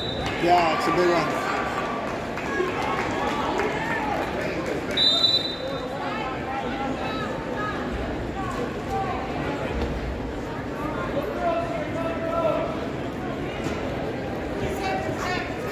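Wrestlers' shoes squeak on a mat.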